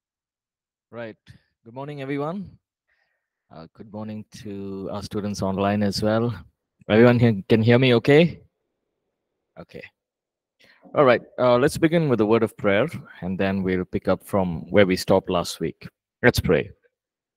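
A young man speaks calmly into a close microphone, heard through an online call.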